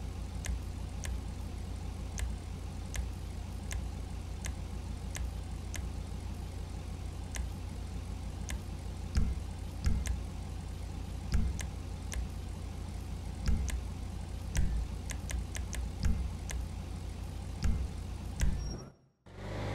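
Soft menu clicks tick at a steady pace.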